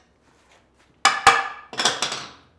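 A mallet taps sharply on wood.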